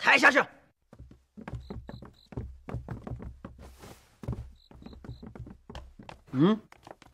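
Blows and bodies thump during a fight.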